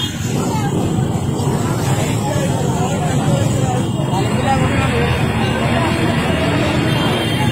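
Motorbike engines rumble along a street.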